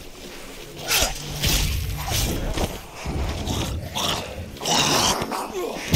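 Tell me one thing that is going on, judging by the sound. A zombie snarls and growls up close.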